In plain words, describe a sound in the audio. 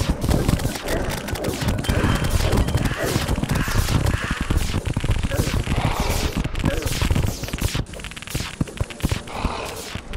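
Magic spell effects whoosh repeatedly.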